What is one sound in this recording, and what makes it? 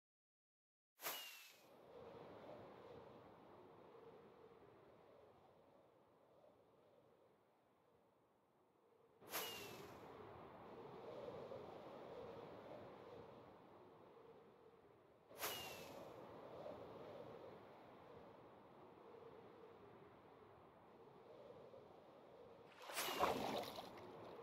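A firework rocket launches with a whoosh.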